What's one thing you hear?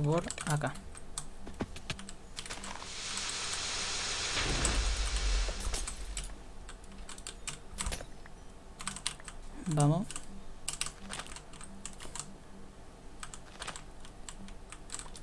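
Game footsteps patter quickly on the ground.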